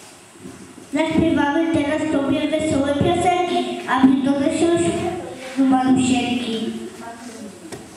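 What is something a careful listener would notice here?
A young girl speaks into a microphone, reciting clearly.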